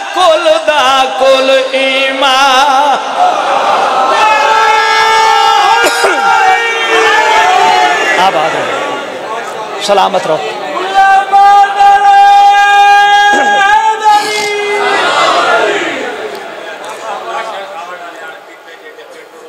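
A man recites loudly and passionately into a microphone, his voice ringing through loudspeakers.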